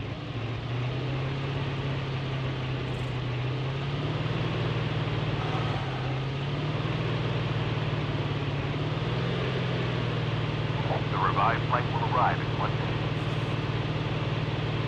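A vehicle engine hums steadily as it drives over rough ground.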